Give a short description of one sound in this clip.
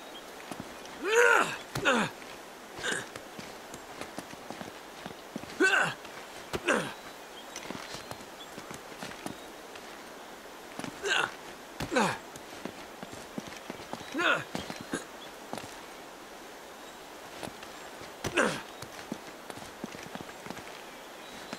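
Footsteps scuff and tap on stone.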